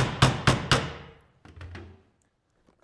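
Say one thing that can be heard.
A hammer strikes sheet metal with ringing blows.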